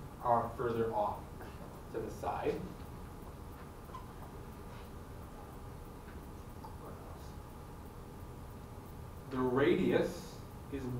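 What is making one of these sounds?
A man speaks with pauses, a little way off in a room with some echo.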